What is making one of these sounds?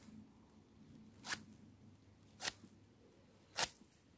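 A knife scrapes and cuts through coarse rope fibres.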